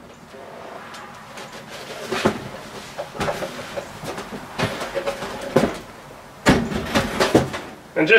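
A wooden cabinet door thumps and creaks as it swings open and shut.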